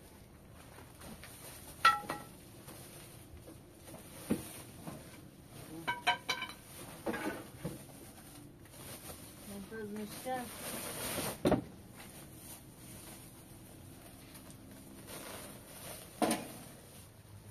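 Plastic sacks rustle and crinkle as they are handled.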